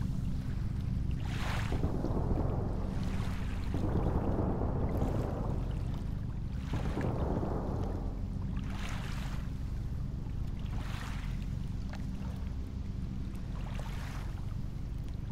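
Waves wash and swell on open water.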